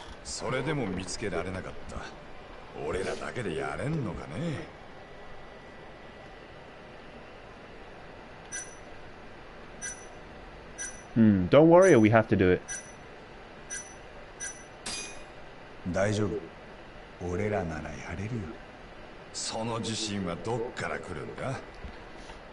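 A man speaks in a rough, tense voice, close by.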